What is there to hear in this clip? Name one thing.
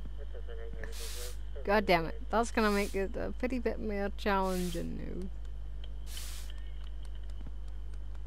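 A broom sweeps across pavement in short strokes.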